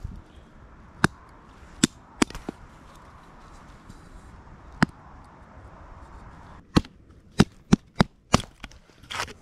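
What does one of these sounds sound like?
An axe strikes and splits wood with sharp knocks.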